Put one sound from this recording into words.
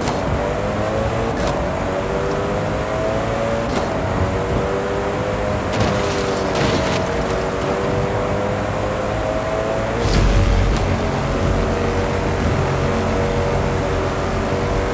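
A race car engine roars at high revs, rising steadily in pitch.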